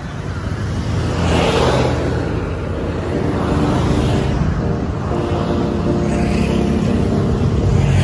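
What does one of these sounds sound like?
Motorcycle engines drone as they ride past.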